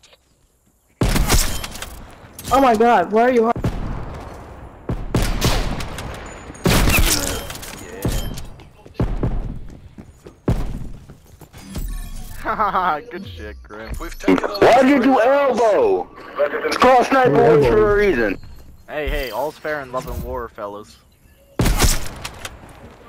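A rifle fires single loud, sharp shots.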